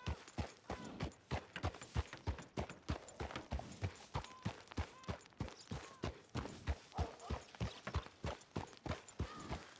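Horse hooves clop steadily on a muddy dirt road.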